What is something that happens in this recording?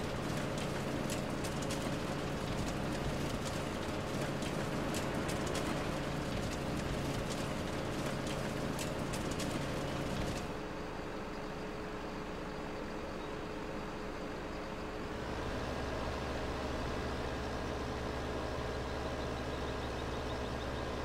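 A heavy machine engine rumbles steadily.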